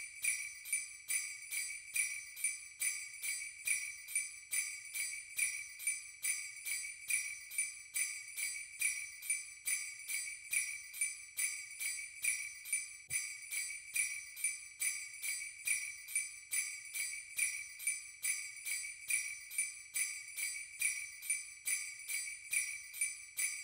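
Bright sleigh bells jingle in a quick, steady rhythm.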